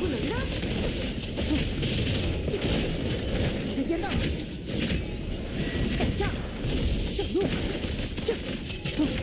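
Electric crackles and magical blasts burst rapidly during a fast fight.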